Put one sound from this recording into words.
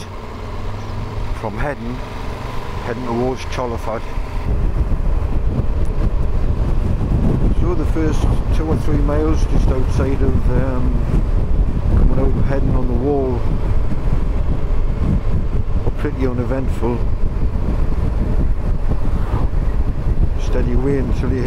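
Wind roars steadily against a moving motorcycle, growing louder as it speeds up.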